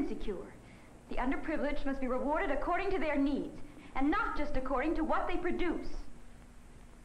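A young woman speaks clearly and earnestly.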